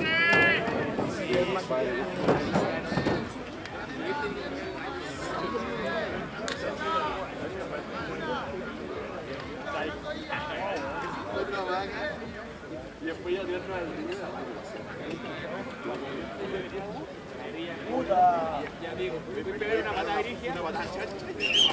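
Men shout to one another across an open field.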